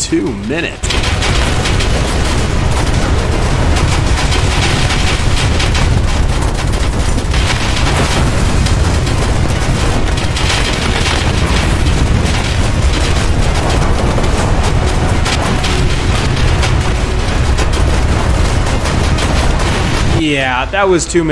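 Explosions boom and rumble in rapid succession.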